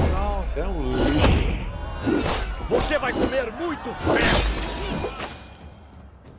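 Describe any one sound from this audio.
Swords and axes clash in a fierce fight.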